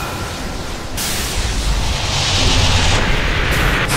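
Fantasy battle sound effects crackle and boom as magic spells hit.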